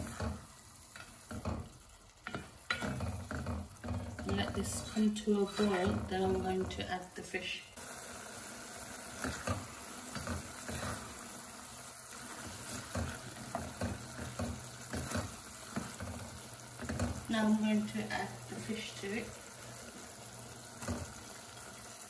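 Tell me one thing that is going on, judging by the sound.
A spatula stirs and scrapes through thick food in a metal pot.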